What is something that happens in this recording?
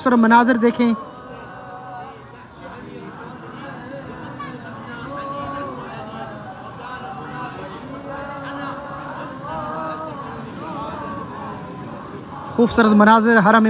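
A man recites in a steady, melodic voice nearby.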